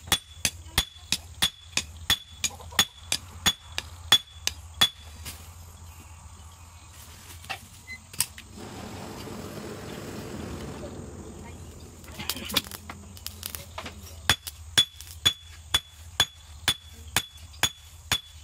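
A hammer rings sharply on metal in quick, regular blows.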